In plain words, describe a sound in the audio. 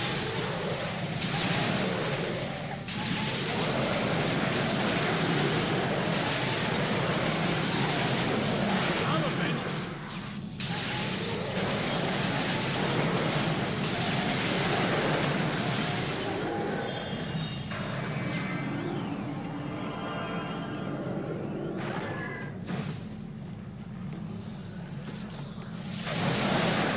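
Spell blasts and clashes of combat sound from a game.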